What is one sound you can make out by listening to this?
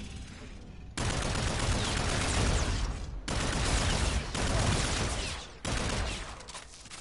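A rapid-fire gun rattles in long, loud bursts.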